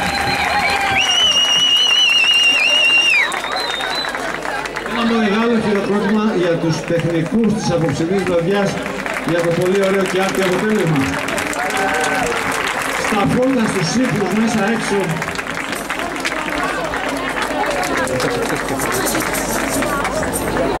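An accordion plays.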